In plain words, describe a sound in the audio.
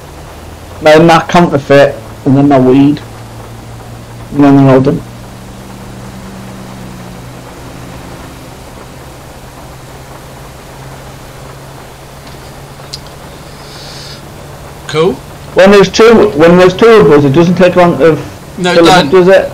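A van engine hums steadily.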